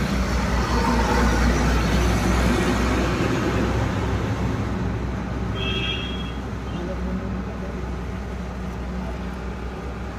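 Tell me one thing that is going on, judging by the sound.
A heavy truck engine rumbles steadily nearby.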